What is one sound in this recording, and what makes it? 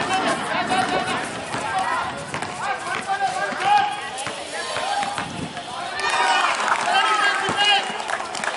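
Young people shout and call out to each other outdoors.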